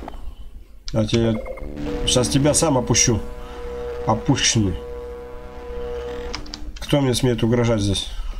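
A wall-mounted suit charger gives off a buzzing electronic hum while charging.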